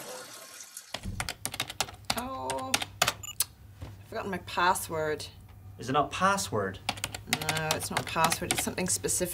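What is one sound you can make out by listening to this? A woman types on a keyboard.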